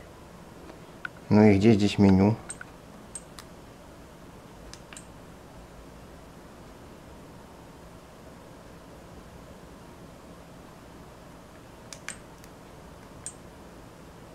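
A small device's buttons click under a finger now and then.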